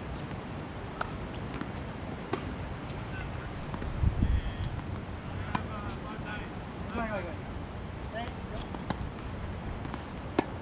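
Tennis balls pop off rackets with sharp hollow thwacks, outdoors.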